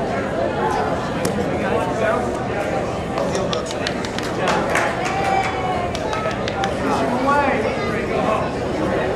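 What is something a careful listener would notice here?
Grappling bodies thump and shuffle on a mat.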